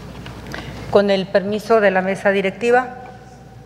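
A woman speaks calmly into a microphone in a large echoing hall.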